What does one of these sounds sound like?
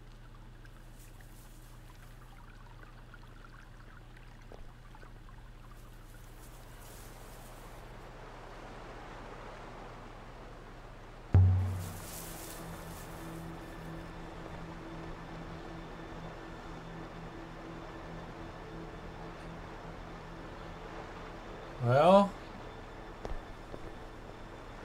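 Footsteps walk softly over stone.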